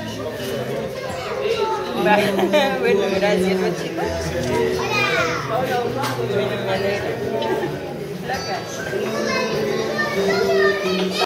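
People sing and talk together close by.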